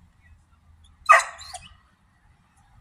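A dog barks once nearby.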